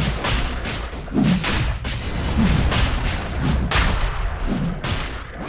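Spell effects crash and whoosh in a fast game fight.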